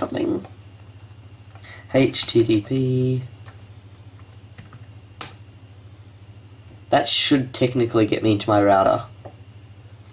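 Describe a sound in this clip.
A man speaks calmly and close to a microphone, in short phrases.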